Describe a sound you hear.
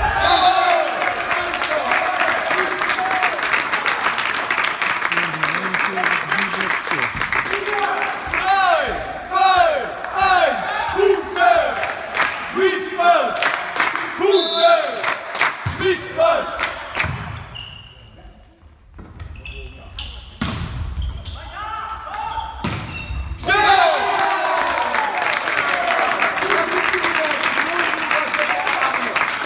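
A volleyball is struck with loud slaps.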